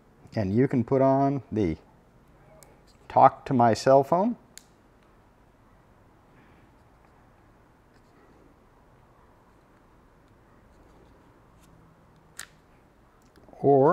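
Small plastic parts click together in a man's hands.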